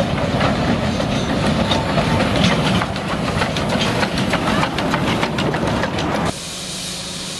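A small steam train rumbles and clatters past on its rails.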